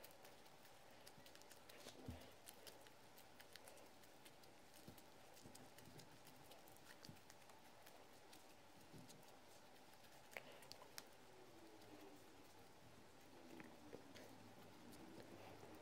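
Fluffy slime squelches and pops as hands stretch and squeeze it.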